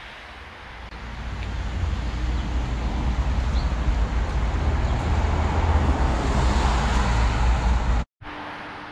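Traffic rumbles along a nearby street.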